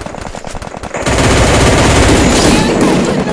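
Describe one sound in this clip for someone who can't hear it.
Gunshots crack in a rapid burst.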